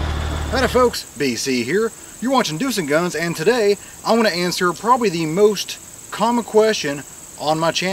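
A man talks with animation outdoors.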